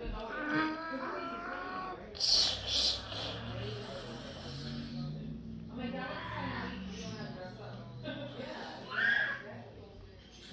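A young boy talks close by with animation.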